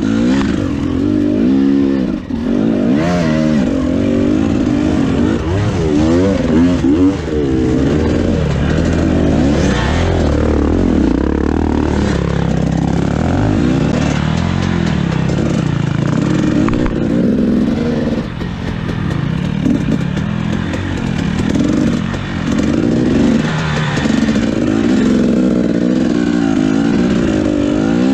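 A dirt bike engine revs hard and sputters up close, rising and falling in pitch.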